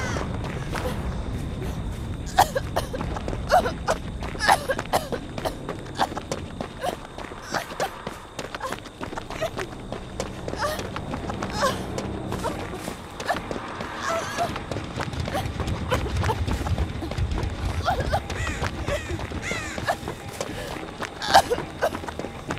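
Footsteps run quickly through dry grass and dirt.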